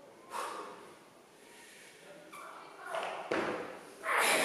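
Weight plates on a barbell clank as the barbell is lifted off the floor in an echoing hall.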